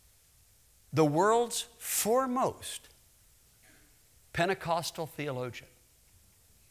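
A man speaks with animation through a microphone in a large hall, in short bursts with pauses.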